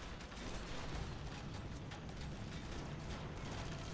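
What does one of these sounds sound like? A mech cannon fires in bursts of loud blasts.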